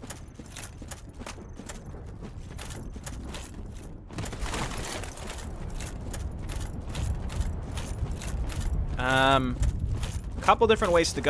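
Armoured footsteps clink steadily on the ground.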